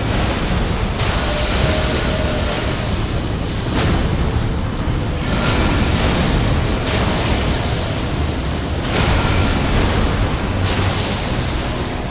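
Magic blasts crackle and roar in bursts.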